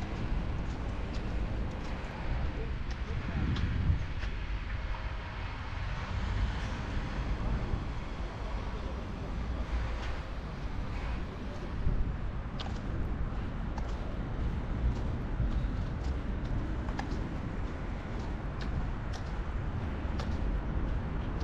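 Footsteps tap on pavement at a steady pace.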